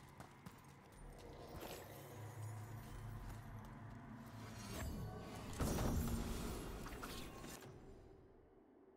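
A chest opens with a magical shimmering chime.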